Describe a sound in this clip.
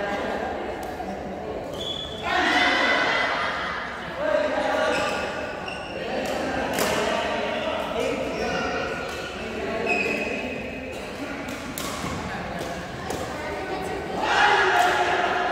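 Shuttlecocks are struck with rackets with sharp pops in a large echoing hall.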